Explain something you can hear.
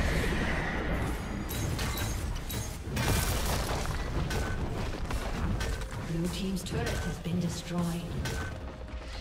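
Game characters clash with repeated hits.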